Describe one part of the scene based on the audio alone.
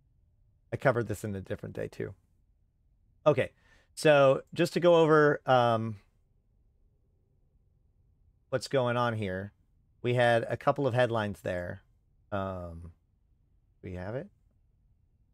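A man speaks calmly and casually into a close microphone, in short bursts with pauses.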